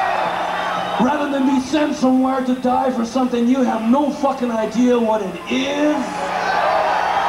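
A man sings loudly through a microphone over a loud, echoing sound system.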